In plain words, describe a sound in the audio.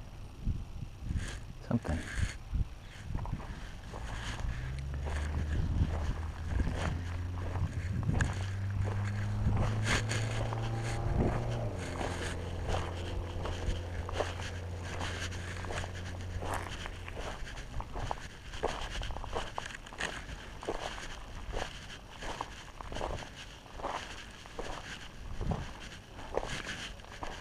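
Tyres crunch and rattle over loose rocks and gravel.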